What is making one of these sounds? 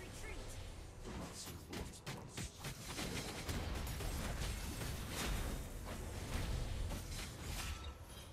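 Game spells blast and crackle in a fast battle.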